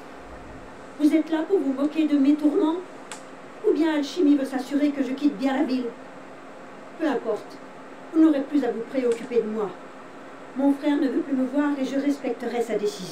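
A woman speaks calmly and clearly.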